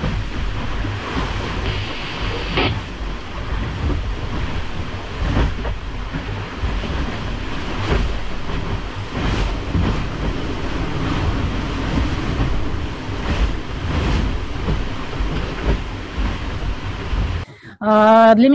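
A boat's cabin rumbles steadily with the sound of water rushing against the hull.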